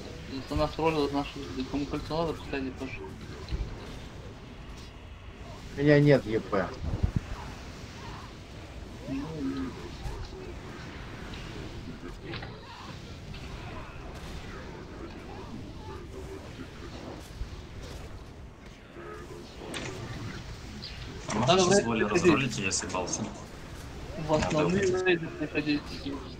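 Spells crackle and whoosh in a fight.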